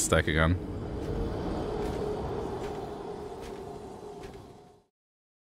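Armoured footsteps thud across stone.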